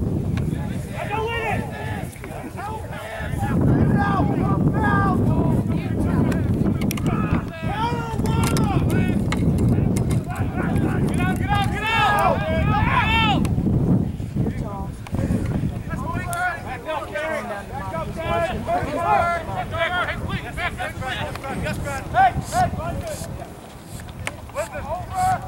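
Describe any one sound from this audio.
Men on the sideline shout and call out loudly nearby.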